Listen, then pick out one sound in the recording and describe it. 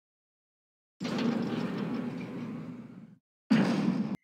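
Heavy metal doors slide open with a loud rumbling scrape.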